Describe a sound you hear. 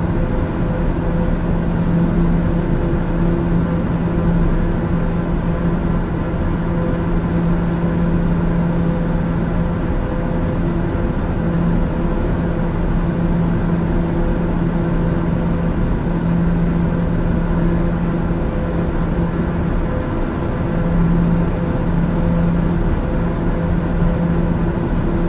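A single-engine turboprop drones steadily in cruise, heard from inside the cabin.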